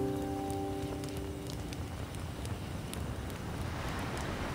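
A fire crackles and pops sharply.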